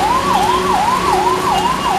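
A car splashes through deep water on the road.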